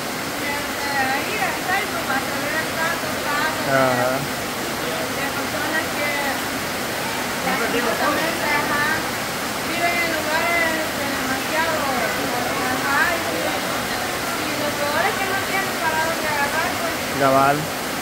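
A young woman talks.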